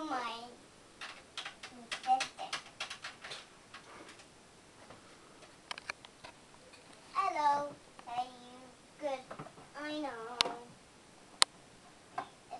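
Plastic toys clack and rattle as they are handled.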